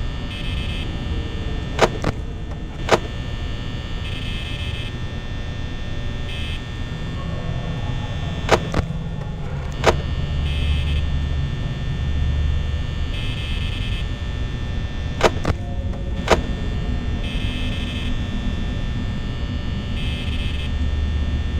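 An electric fan whirs steadily.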